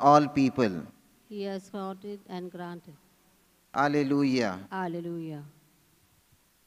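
A middle-aged man chants slowly into a microphone.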